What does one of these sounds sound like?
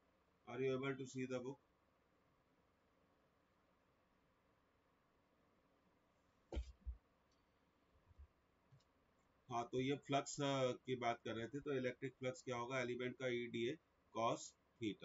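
A middle-aged man speaks calmly into a close microphone, with pauses.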